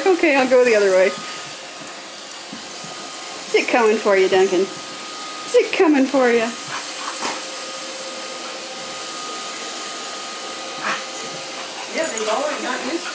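A robot vacuum hums steadily.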